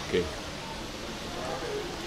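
A man gulps water from a plastic bottle.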